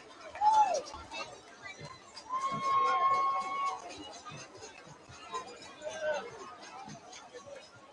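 A crowd of spectators cheers and murmurs outdoors.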